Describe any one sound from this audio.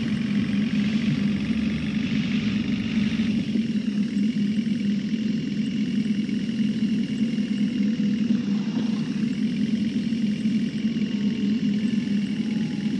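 A bus engine hums steadily as it drives along.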